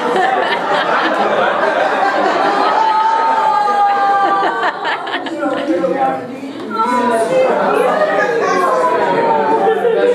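A group of young men and women shout and sing loudly together in a hall.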